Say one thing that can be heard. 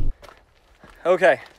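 A young man speaks close by in a calm voice.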